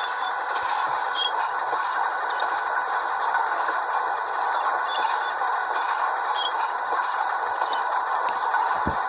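A diesel locomotive engine rumbles steadily as a train rolls along the rails at speed.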